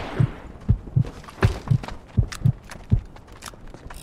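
Heavy blows thud in quick succession.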